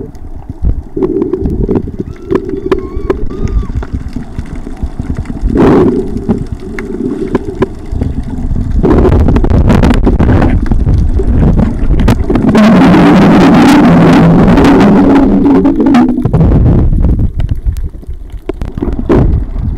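Water swirls and rumbles, heard muffled from underwater.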